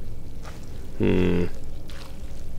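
A large creature lets out a short, harsh cry.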